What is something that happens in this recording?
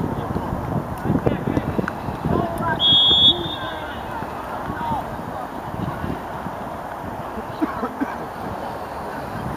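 Young teenage boys shout to one another outdoors on an open pitch.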